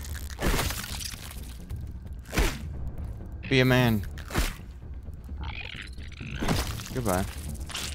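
Insects burst with wet squelches.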